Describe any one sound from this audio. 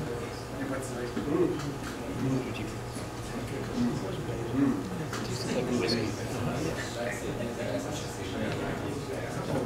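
A crowd of men and women chatters indoors.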